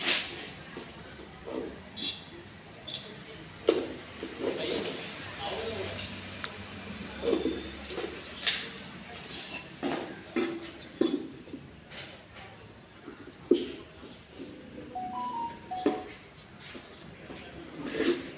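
A tool knocks and scrapes against wooden boards.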